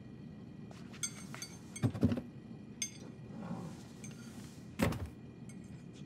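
Cupboard doors knock and clatter as a man rummages through them.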